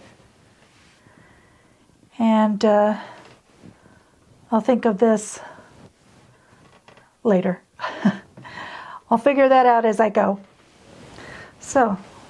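A hand softly brushes and smooths fabric.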